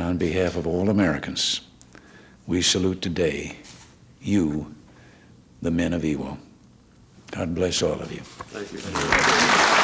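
An elderly man speaks calmly into a microphone at a podium.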